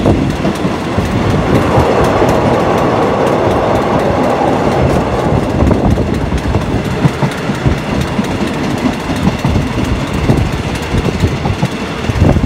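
A passenger train rumbles and clatters along the rails.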